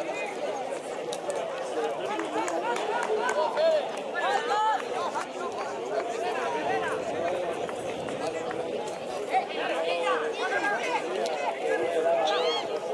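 Football players shout and call to each other across an open outdoor field.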